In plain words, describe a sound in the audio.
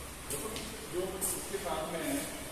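A man speaks calmly nearby in an echoing hall.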